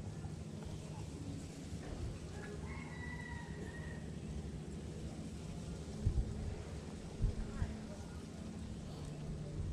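Fingers rub and pinch together up close.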